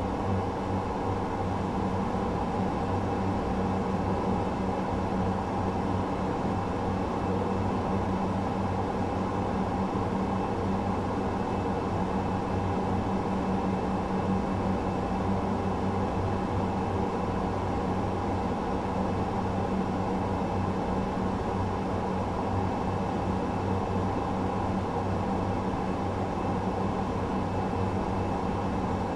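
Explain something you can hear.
Jet engines hum and drone steadily.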